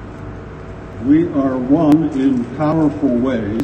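An elderly man speaks calmly into a microphone over loudspeakers.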